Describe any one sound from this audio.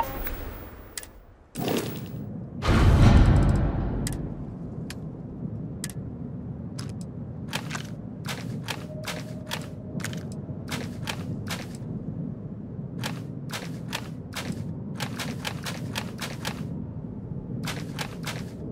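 Short menu clicks tick again and again.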